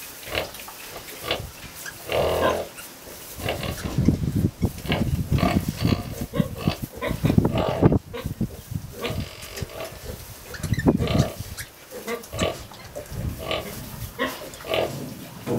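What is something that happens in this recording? A sow grunts softly and steadily.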